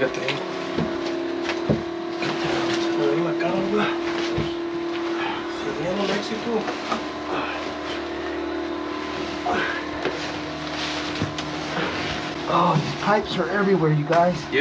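Wood knocks and creaks as a man climbs down into a crawl space.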